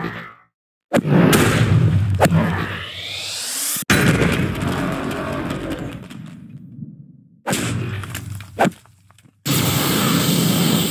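A magical blast roars and crackles.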